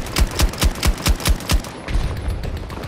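A rifle fires a quick burst of loud, sharp shots close by.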